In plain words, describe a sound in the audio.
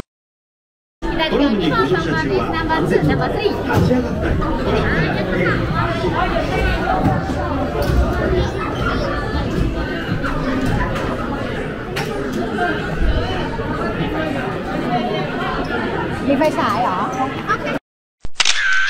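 A crowd of people chatters nearby indoors.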